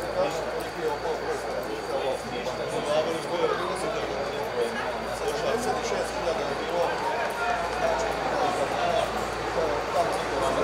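Young men shout to each other at a distance outdoors.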